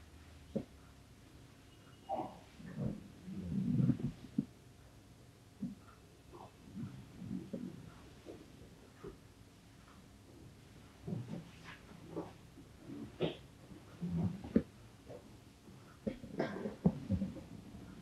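Hands rub and press against clothing with soft rustles.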